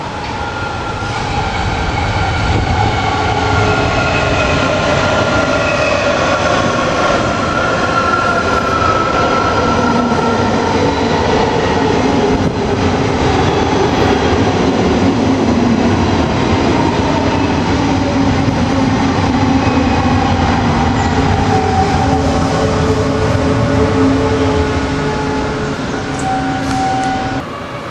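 Train brakes squeal with high, drawn-out tones.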